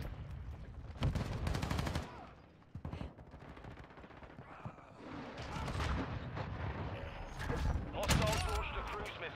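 A pistol fires several sharp, loud shots.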